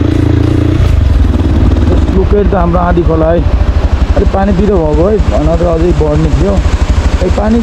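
A swollen river rushes and roars.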